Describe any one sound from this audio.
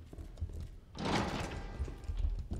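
A heavy door swings open.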